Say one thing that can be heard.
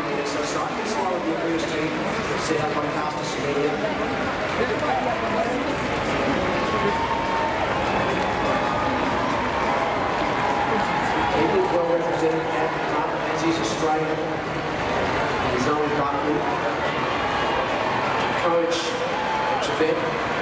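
A large crowd cheers and roars in a big stadium.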